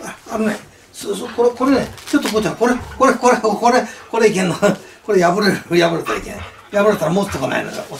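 An elderly man talks with animation close by.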